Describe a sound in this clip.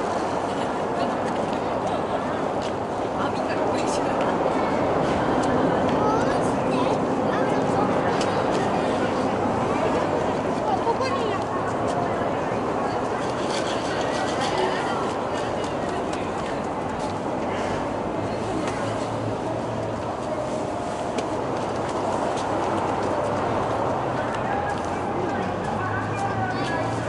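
Police motorcycles rumble low as they ride slowly past.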